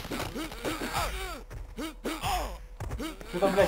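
A body crashes down onto the ground.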